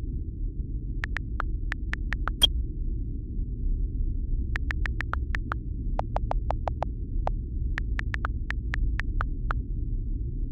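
Keyboard clicks tap out quickly in short bursts.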